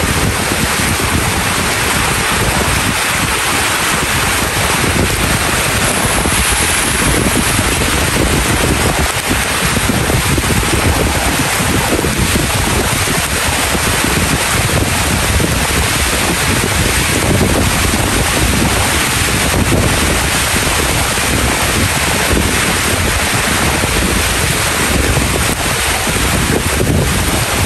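Leaves rustle and flutter in the wind.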